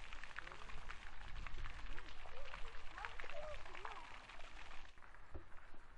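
A small fountain sprays and splashes water.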